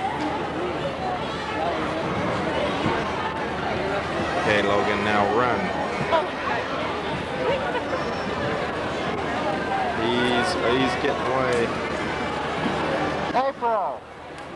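A crowd of children and adults chatters in a large echoing gym.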